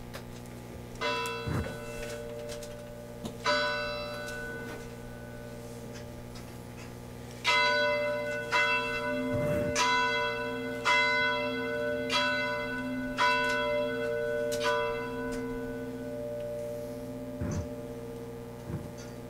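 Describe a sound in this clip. A piano plays slow chords outdoors.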